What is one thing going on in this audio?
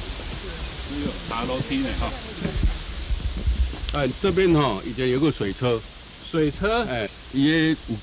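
A middle-aged man talks with animation close by, outdoors.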